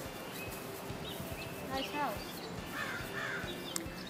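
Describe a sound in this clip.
Footsteps swish softly across grass.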